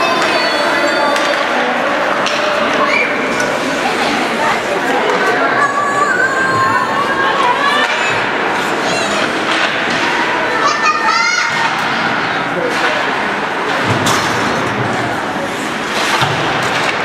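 Hockey sticks clack against a puck and each other.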